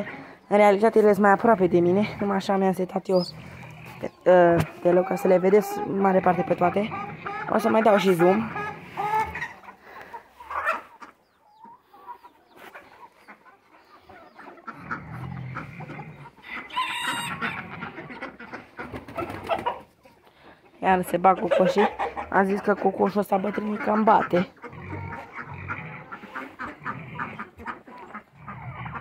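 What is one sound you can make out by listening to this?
Many chickens cluck and squawk close by.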